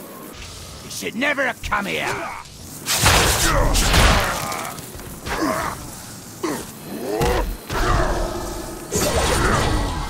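Magic spells whoosh and crackle loudly in a fight.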